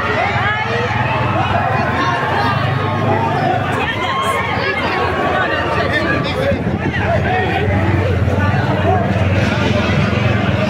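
A large crowd of men shouts and chants loudly outdoors, close by.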